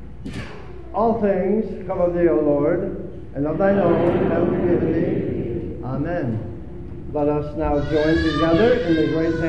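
A congregation sings a hymn together in an echoing hall.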